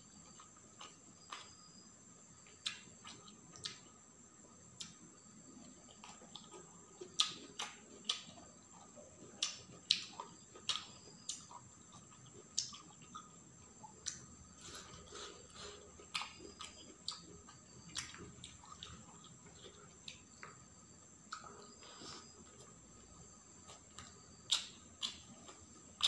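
A person chews crunchy food close to a microphone.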